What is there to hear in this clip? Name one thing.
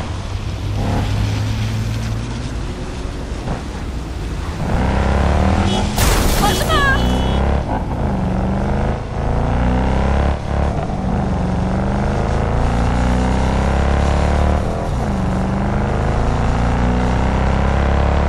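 A car engine hums and revs as the car speeds along a road.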